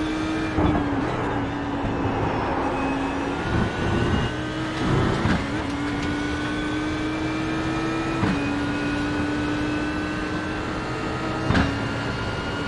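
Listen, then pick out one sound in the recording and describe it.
A gearbox shifts with sharp clunks.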